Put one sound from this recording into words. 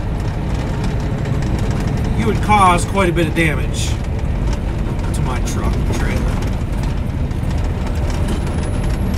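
A vehicle's engine rumbles steadily as it drives along a road.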